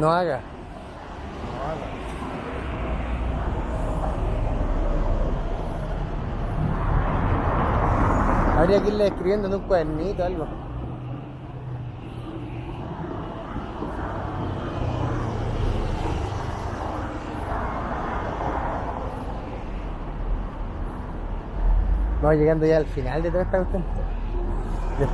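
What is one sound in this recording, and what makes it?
Cars drive by on a street, their engines and tyres rising and fading.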